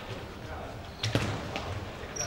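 A ball is kicked with a sharp thud in an echoing hall.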